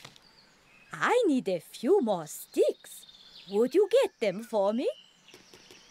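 A woman speaks cheerfully, as in a cartoon.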